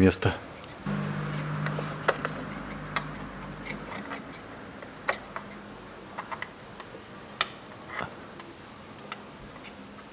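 Metal parts scrape and click faintly.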